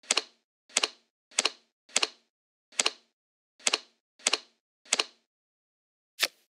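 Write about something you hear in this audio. Cards snap crisply as they are flipped over, again and again.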